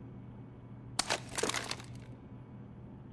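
A gun is swapped for another with a quick metallic clatter.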